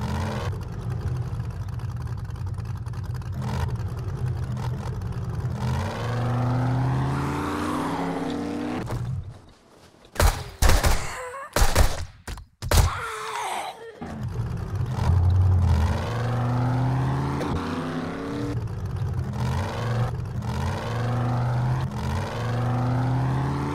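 A vehicle engine drones and revs.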